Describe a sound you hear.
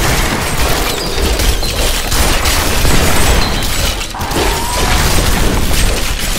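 Spells crackle and burst in rapid bursts of game combat.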